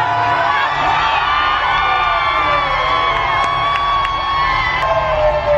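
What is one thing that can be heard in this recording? A crowd sings together.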